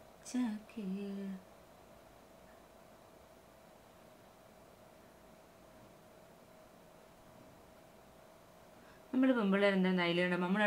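A young woman hums softly close by.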